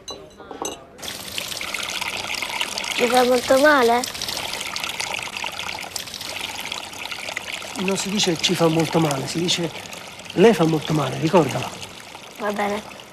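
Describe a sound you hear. Water pours steadily from a tap.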